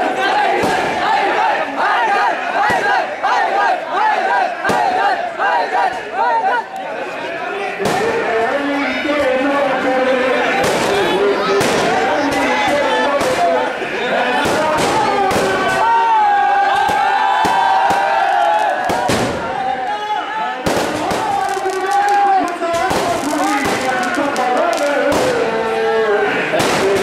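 A crowd of men shouts and chants loudly close by.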